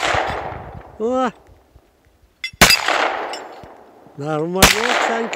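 A metal target rings with a clang when hit.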